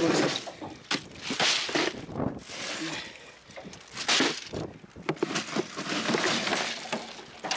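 Bags of ice crunch and rustle as they are laid in a cooler.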